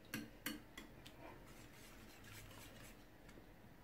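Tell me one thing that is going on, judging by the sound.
A wire whisk clinks against a bowl.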